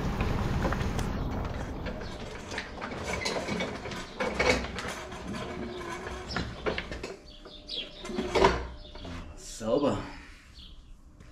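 A pedal kart rattles as it is pushed over a concrete floor.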